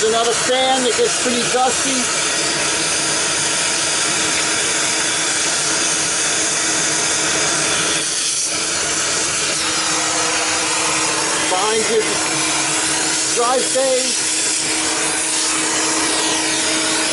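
A vacuum cleaner whirs steadily up close.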